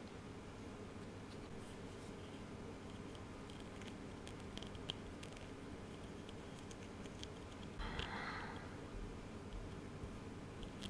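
Fingers softly handle and rustle a small flexible flower.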